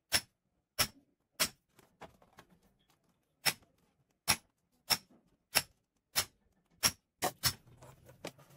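A hammer taps sharply on a metal punch, blow after blow.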